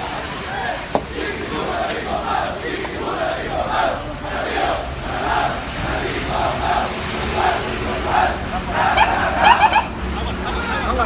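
A crowd of men and women cheers and chants loudly in rhythm nearby.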